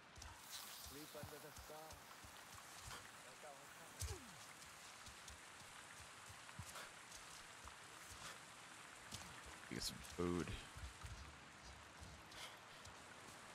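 Footsteps crunch over soft forest ground.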